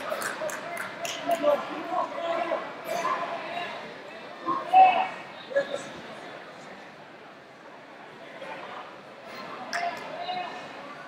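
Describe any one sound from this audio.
Wrestling shoes squeak on a wrestling mat.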